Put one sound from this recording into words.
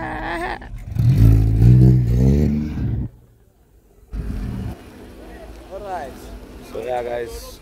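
A car engine revs loudly nearby.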